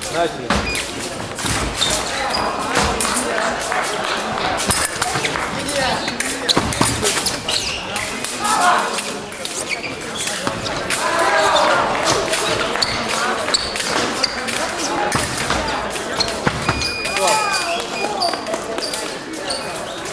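Fencing blades clash and scrape.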